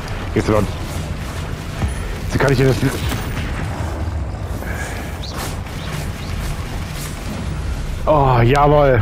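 Magic spells crackle and burst in quick blasts.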